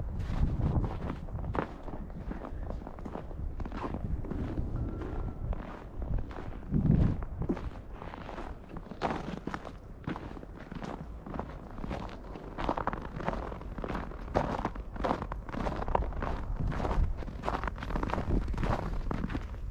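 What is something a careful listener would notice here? Wind buffets outdoors with a low rumble.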